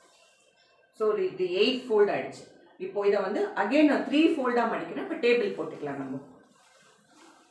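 A middle-aged woman speaks calmly and clearly, close to a microphone.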